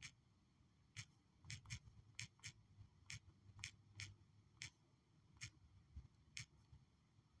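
Soft keyboard taps click in a quick, uneven run.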